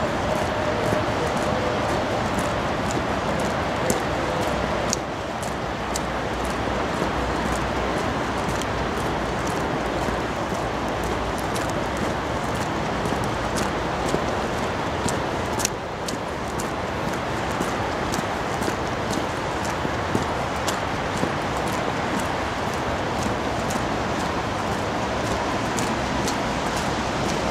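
Footsteps tread steadily on a paved path outdoors.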